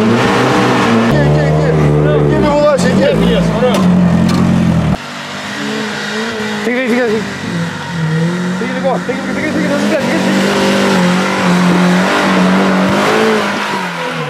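An engine revs hard as an off-road vehicle climbs a steep slope.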